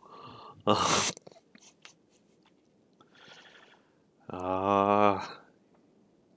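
A man laughs into a close microphone.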